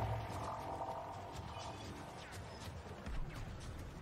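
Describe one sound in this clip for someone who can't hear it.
Blaster shots fire in a distant battle.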